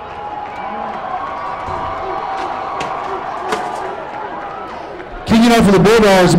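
A large crowd cheers and shouts outdoors.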